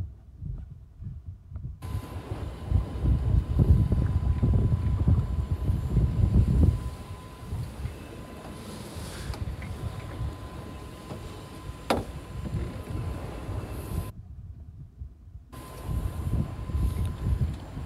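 A fishing reel clicks as it is wound in.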